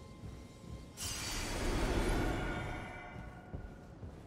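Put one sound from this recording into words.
A magic spell whooshes, swells and slowly fades.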